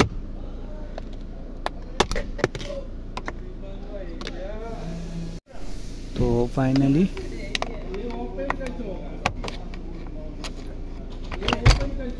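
A screwdriver clicks and scrapes against plastic.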